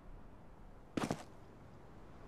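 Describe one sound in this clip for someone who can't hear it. A pistol fires a single sharp shot.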